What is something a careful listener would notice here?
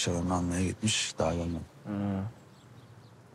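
A young man speaks softly and close by.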